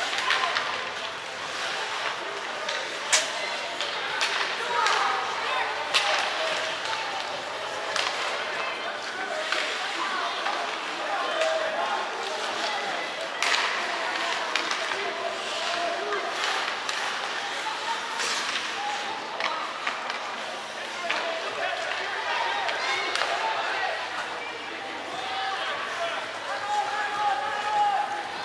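Young players shout and call out across the echoing ice.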